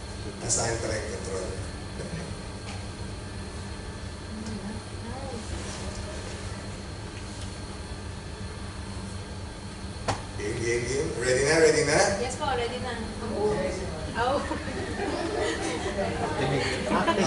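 A middle-aged man speaks calmly through a microphone in a room with a slight echo.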